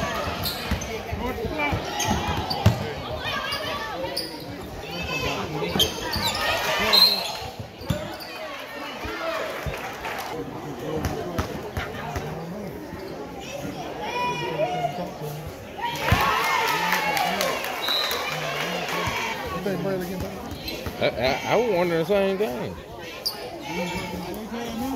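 A crowd in a large echoing gym chatters and cheers.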